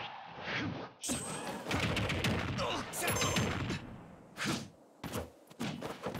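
Magic blasts crackle and hum.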